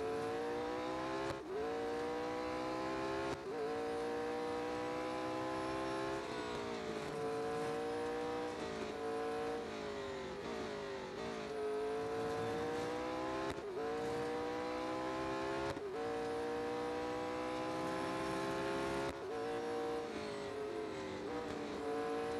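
A racing car engine roars at high revs, rising through the gears and dropping as it shifts and brakes.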